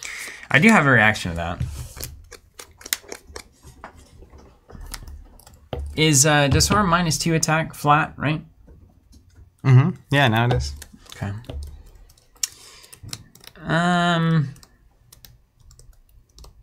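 Small game pieces click and tap on a table.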